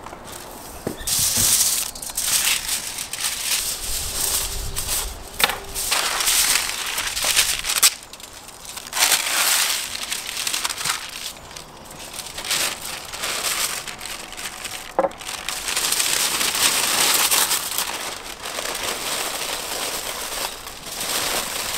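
Aluminium foil crinkles and rustles loudly.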